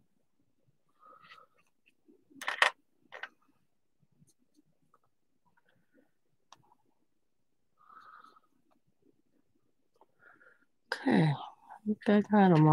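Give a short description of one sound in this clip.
A paintbrush brushes softly across a painted surface.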